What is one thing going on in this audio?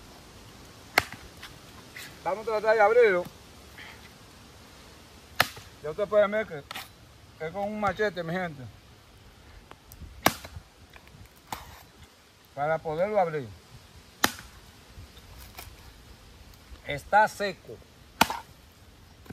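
A machete strikes a coconut husk with sharp chops.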